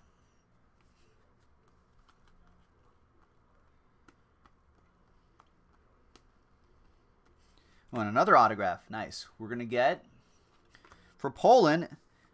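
Trading cards rustle and click as hands shuffle them.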